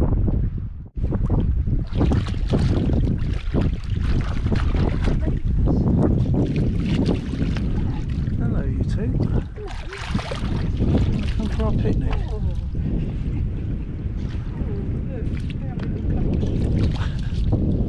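Water splashes as seals swim close by.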